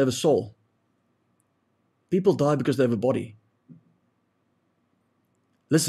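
A young man speaks calmly and closely into a microphone, in short bursts.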